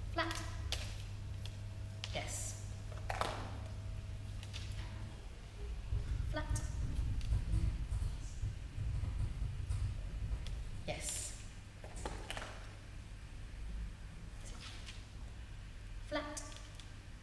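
A woman speaks short, encouraging words to a dog in an echoing hall.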